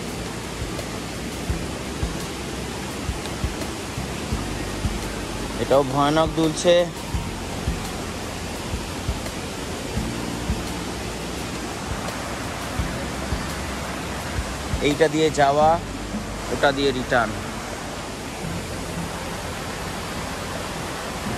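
A stream rushes steadily over rocks nearby.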